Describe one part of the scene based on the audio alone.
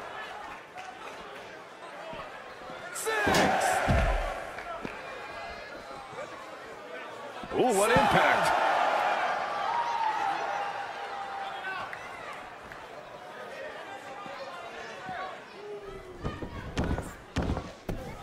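A large crowd cheers and roars in a big arena.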